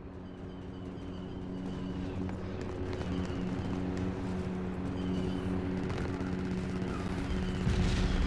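Lightsabers hum steadily.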